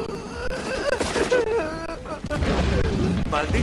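A man laughs heartily close by.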